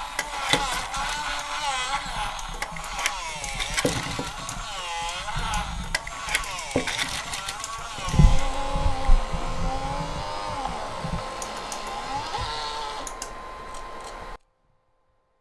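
A small electric motor whines, its pitch rising and falling.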